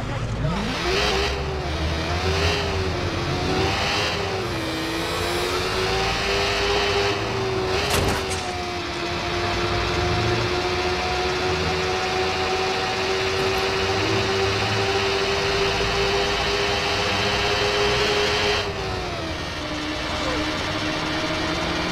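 A motorcycle engine revs and roars steadily, rising and falling in pitch.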